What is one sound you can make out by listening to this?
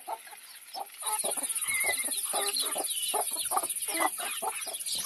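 Chicks peep loudly and rapidly.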